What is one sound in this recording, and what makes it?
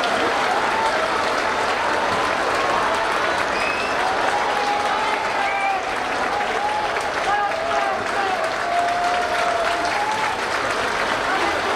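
A large crowd cheers and claps in an echoing hall.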